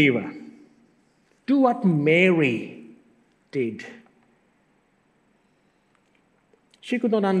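A man speaks calmly in short bursts with pauses, through a microphone in an echoing room.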